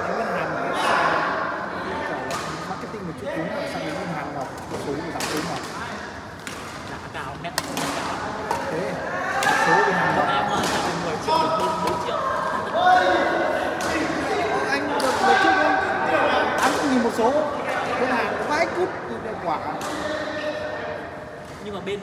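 Young men and women talk and call out across an echoing hall.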